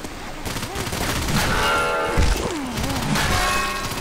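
A heavy axe blow thuds into a body.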